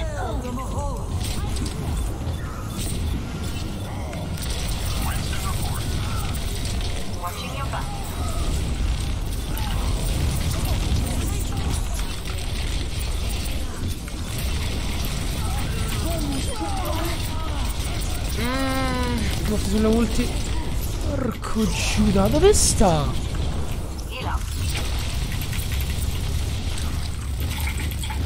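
Gunfire from a video game rattles steadily.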